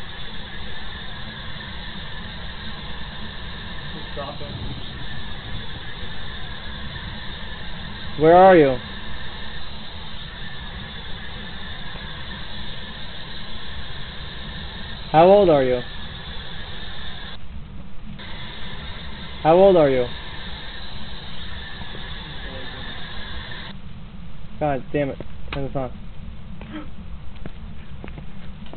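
A radio hisses with steady static while scanning.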